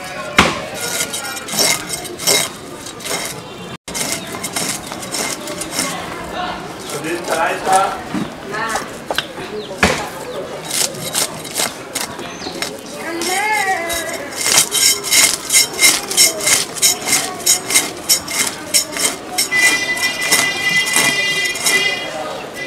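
A blade scrapes rapidly and rhythmically over fish scales.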